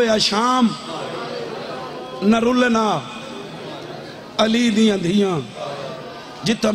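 A man chants loudly and with feeling into a microphone, in long sung phrases.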